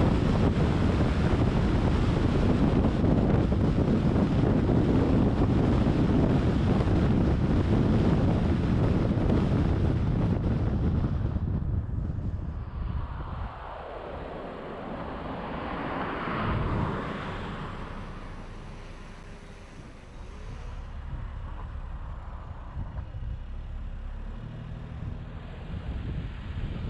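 Tyres roll steadily on a paved road, heard from inside a moving car.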